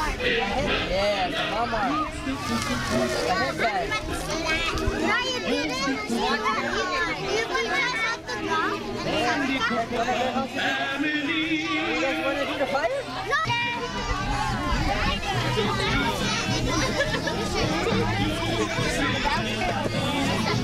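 A crowd of children chatters and calls out nearby.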